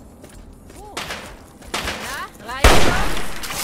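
A rifle fires several loud, sharp shots.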